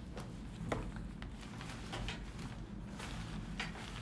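A bag rustles close by.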